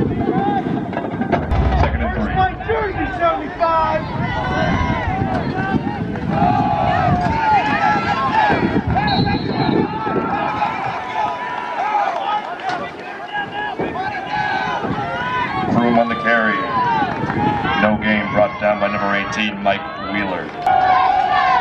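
A crowd of men and women talks and shouts outdoors.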